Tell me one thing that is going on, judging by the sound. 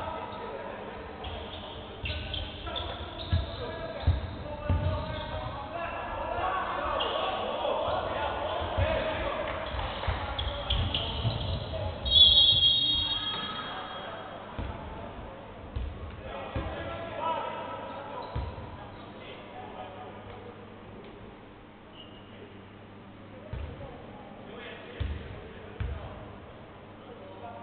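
Sneakers squeak on the hardwood court.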